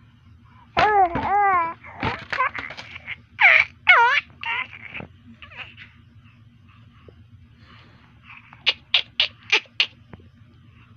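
A baby coos and squeals close by.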